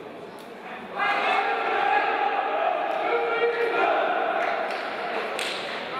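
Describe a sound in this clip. A group of young men cheers and shouts together in a huddle.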